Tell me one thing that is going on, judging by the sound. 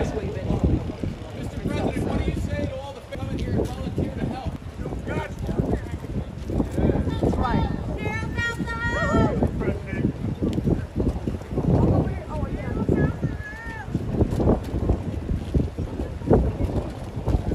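Several adults talk at once in a crowd outdoors.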